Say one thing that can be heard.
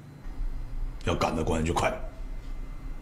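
A second man answers briefly in a tense voice.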